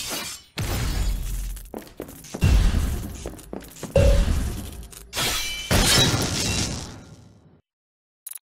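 Blades clash and strike with heavy thuds.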